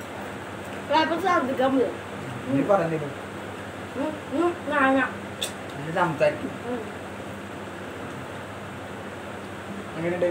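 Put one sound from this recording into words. A boy talks and laughs close by.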